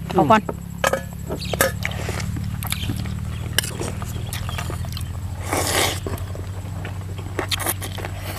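A man slurps and chews food noisily close by.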